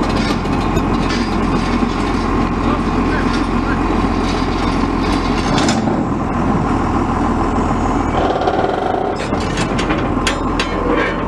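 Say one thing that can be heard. A tractor engine idles with a steady, low rumble.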